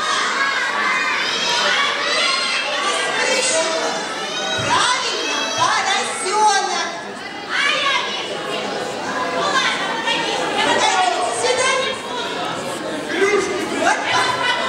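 Many children chatter and shout at once in a large echoing hall.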